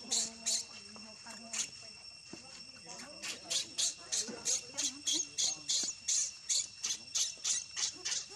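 A baby monkey screeches and cries in short, rapid bursts close by.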